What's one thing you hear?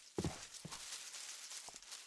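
A pickaxe chips at stone in quick, repeated knocks.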